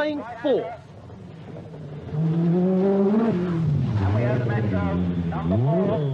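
A rally car engine roars and revs hard as the car races past.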